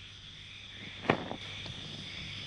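A sword swishes through the air with a sharp crack.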